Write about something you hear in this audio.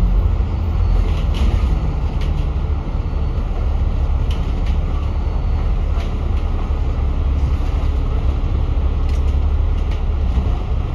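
City traffic hums all around outdoors.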